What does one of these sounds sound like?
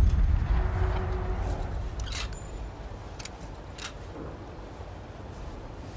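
Footsteps tap on a metal walkway.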